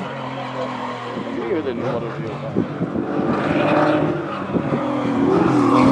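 A classic Porsche 911 flat-six engine drones as the car approaches around a bend.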